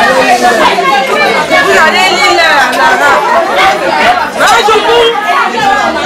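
A woman sings loudly.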